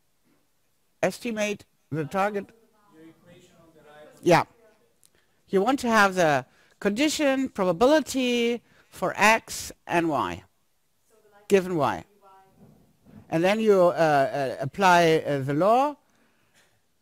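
A woman speaks steadily into a microphone in a large room, with pauses between phrases.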